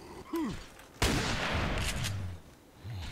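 A pistol fires a shot that echoes off rock walls.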